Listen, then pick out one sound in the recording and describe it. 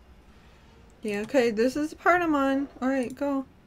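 A young woman speaks animatedly into a headset microphone, close up.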